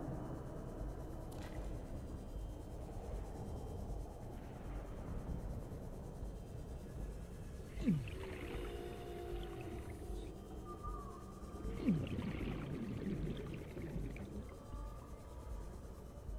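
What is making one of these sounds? A submarine engine hums low and steadily underwater.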